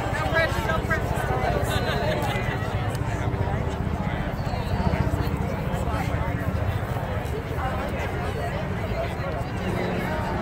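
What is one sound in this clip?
A large crowd of adults chatters outdoors in a low, steady murmur.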